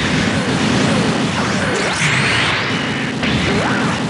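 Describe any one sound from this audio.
Energy blasts crackle and zap.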